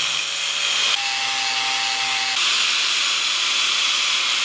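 An angle grinder whines loudly as it cuts into metal.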